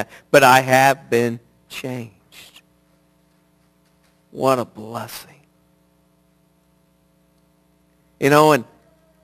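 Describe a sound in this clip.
A middle-aged man speaks with animation through a headset microphone, in short bursts with pauses.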